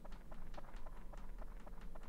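Footsteps patter quickly on dry ground.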